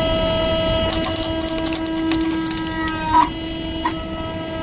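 Plastic pieces crack and snap loudly under a hydraulic press.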